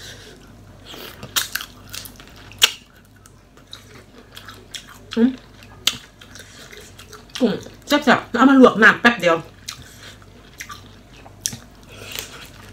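A young woman sucks and slurps on her fingers.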